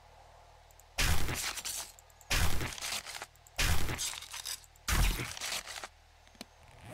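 A knife hacks wetly into an animal carcass, blow after blow.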